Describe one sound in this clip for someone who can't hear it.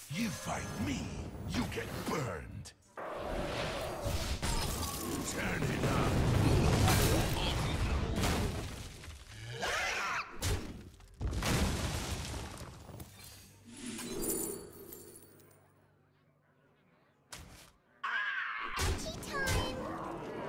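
Game cards flip and chime when played.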